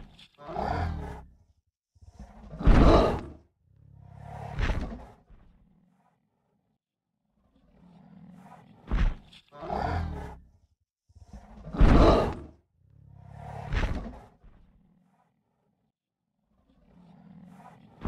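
A dinosaur model bellows in long, loud, repeated calls.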